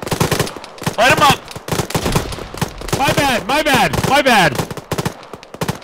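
A rifle fires several shots close by.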